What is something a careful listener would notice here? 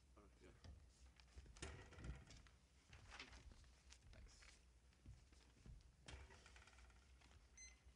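Paper rustles as sheets are handed over.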